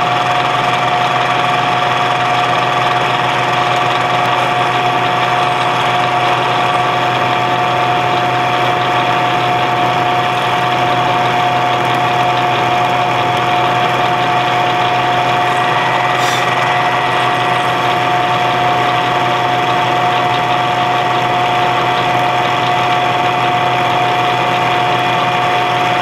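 A milling machine whirs steadily as its cutter grinds into metal.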